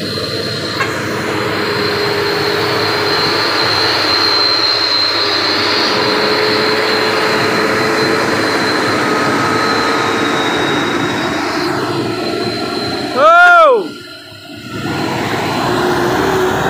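A large truck drives past, its engine roaring.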